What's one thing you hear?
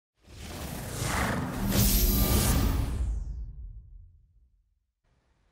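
A game console's startup sound swells up and then slowly fades away.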